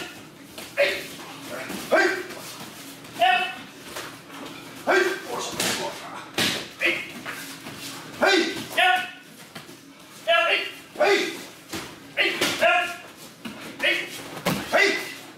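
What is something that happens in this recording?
Bare feet shuffle and slap on mats.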